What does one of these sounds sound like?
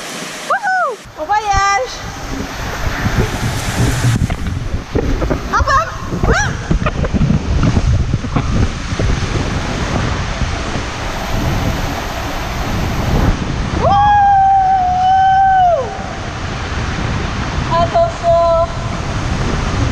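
A rider's body and float rumble and thump against the slide.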